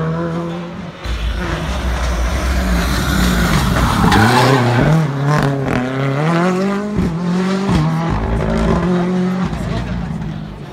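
A rally car races up a tarmac road, revving hard through a bend as it passes close by.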